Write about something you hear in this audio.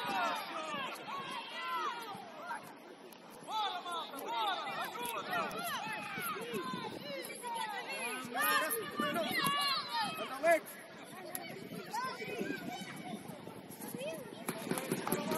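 Young children shout and call out to each other outdoors.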